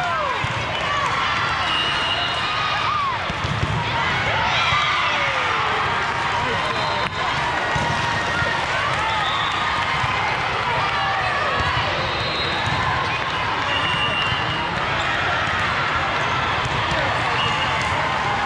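Sneakers squeak sharply on a sports court.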